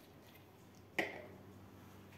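A glass jar knocks down onto a hard surface.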